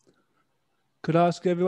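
A man speaks up briefly, close to a microphone.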